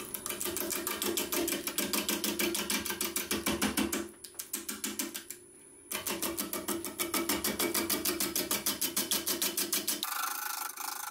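A gouge chatters rapidly against spinning wood.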